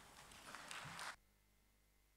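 An audience applauds in a large hall and the clapping stops abruptly.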